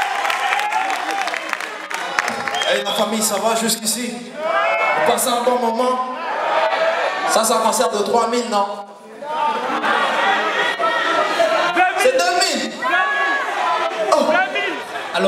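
A band plays music with keyboards and guitars.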